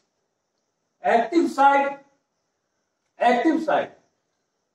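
An older man speaks calmly and clearly, close by.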